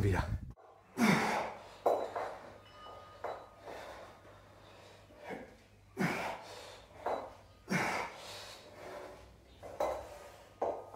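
A man exhales sharply with effort.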